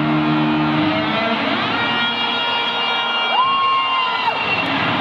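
A large crowd cheers.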